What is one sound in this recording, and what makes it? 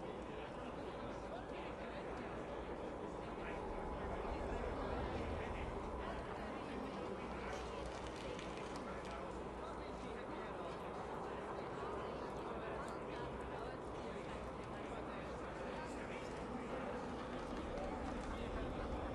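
Wind blows steadily in a snowstorm.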